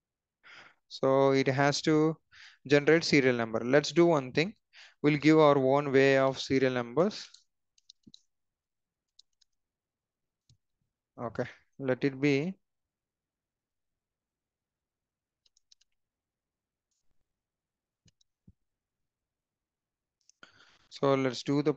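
A young man speaks calmly into a headset microphone, with pauses.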